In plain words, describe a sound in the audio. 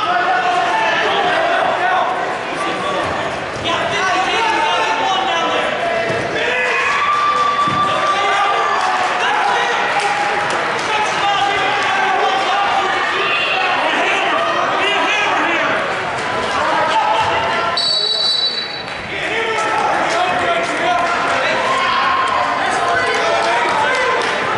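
Wrestlers thud and scuffle on a mat.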